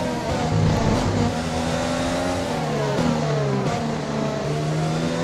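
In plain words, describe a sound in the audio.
A racing car engine roars loudly and steadily.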